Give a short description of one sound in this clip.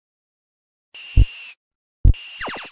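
An arcade game hums and buzzes with electronic bursts.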